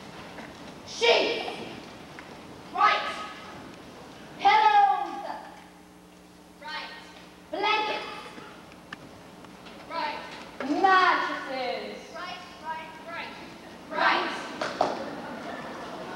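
Performers on a stage sing and call out loudly in a large hall, heard from the audience.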